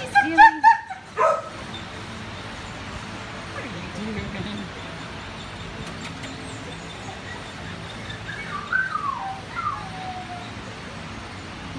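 A dog pants softly close by.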